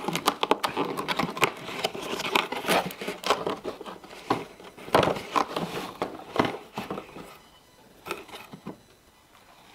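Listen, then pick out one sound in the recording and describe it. Cardboard tears and rustles as a hand opens a small paper door.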